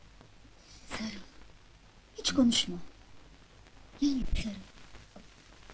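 A young woman moans and gasps softly close by.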